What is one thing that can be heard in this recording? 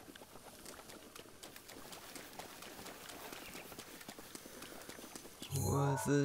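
Footsteps run through tall grass.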